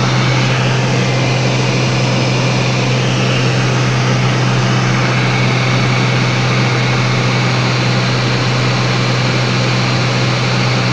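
Wind rushes past a small plane in flight.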